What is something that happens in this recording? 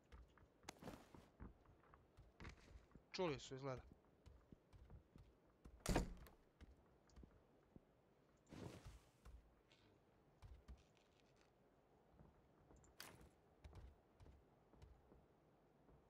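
Footsteps thud on a wooden floor indoors.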